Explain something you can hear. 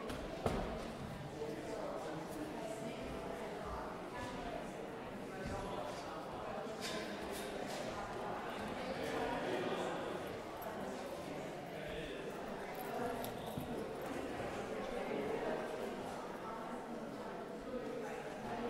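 Several elderly men and women murmur and chat quietly in a large echoing hall.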